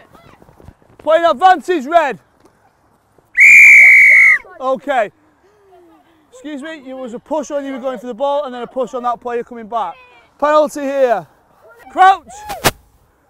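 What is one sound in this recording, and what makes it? Young players shout loudly across an open field.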